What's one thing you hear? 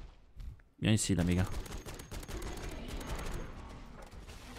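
A rifle fires a burst of rapid shots.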